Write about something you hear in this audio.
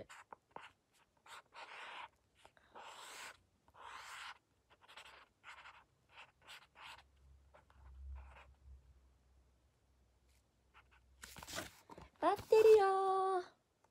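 Paper sheets rustle and flap.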